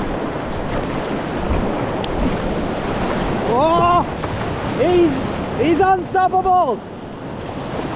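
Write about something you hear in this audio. Whitewater rushes and roars loudly.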